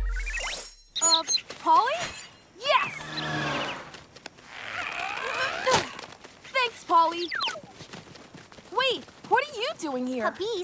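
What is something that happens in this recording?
A young boy speaks with animation.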